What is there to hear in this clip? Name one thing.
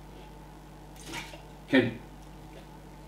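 A man spits into a bucket.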